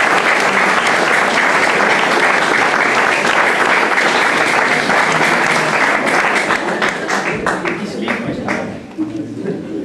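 An audience applauds loudly, then the clapping thins out and fades.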